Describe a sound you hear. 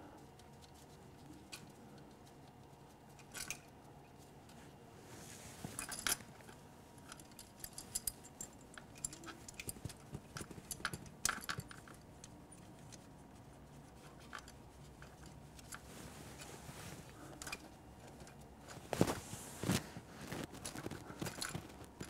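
Metal fuel lines and fittings click and clink under gloved hands.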